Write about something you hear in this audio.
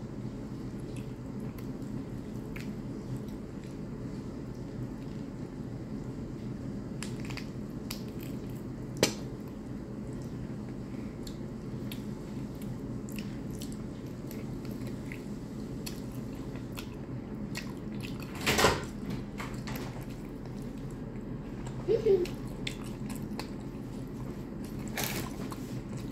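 A person chews food close to a microphone.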